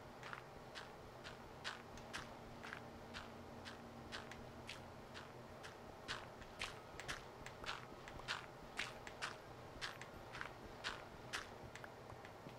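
Blocks are broken with repeated crunching digging sounds.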